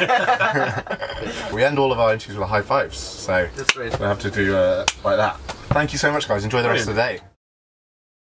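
Several men talk with animation close by.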